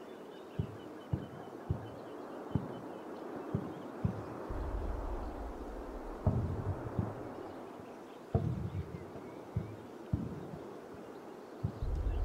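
Distant explosions thud again and again.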